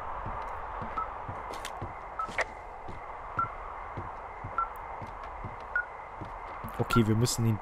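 A handheld device beeps at a steady pace.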